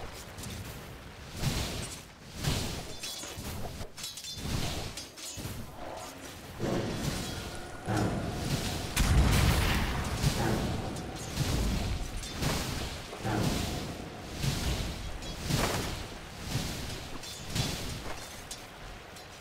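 Game spells and hits burst and clash.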